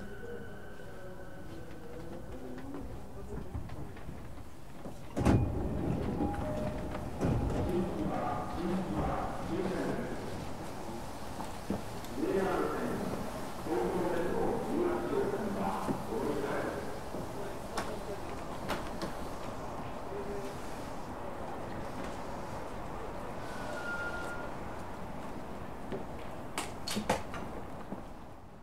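An electric train idles with a low steady hum.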